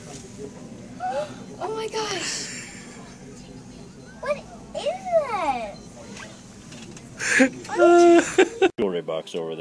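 A young girl squeals and talks excitedly close by.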